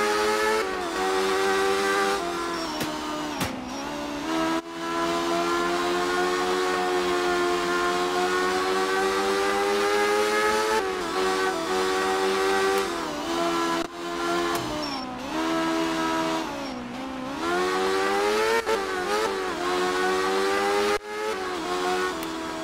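A car engine hums steadily and rises and falls in pitch as the car speeds along and drifts through bends.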